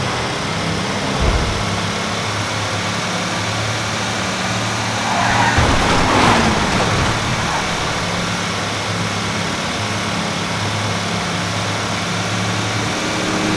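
A heavy truck engine hums steadily as it drives along a winding road.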